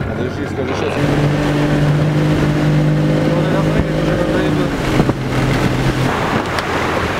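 An outboard motor drives an inflatable boat at speed.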